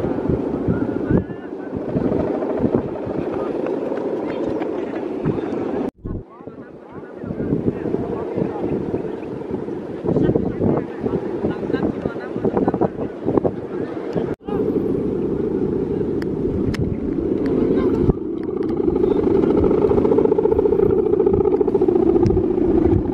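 A kite's hummer drones steadily in the wind overhead.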